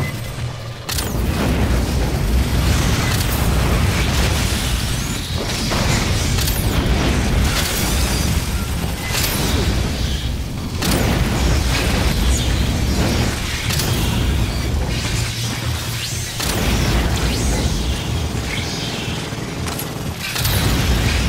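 A flamethrower roars in long bursts.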